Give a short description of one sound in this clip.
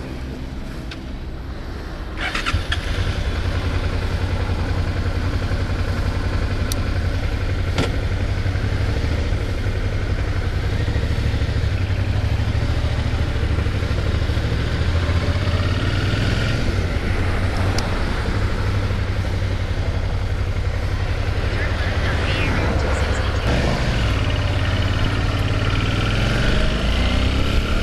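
A motorcycle engine idles, then rumbles louder as the bike rides off.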